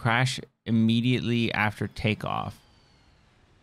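A young man speaks close to a microphone, with animation.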